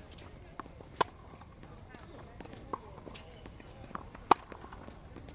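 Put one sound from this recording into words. Racket strings strike a tennis ball with sharp pops, outdoors.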